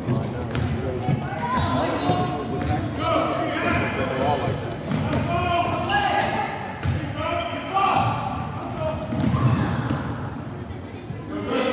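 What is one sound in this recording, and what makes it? Sneakers squeak on a hardwood gym floor.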